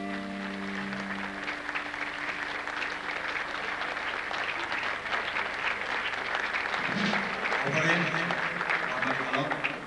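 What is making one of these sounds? A large crowd claps loudly.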